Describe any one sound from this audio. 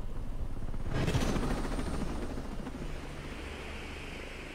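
A helicopter roars overhead with thudding rotor blades.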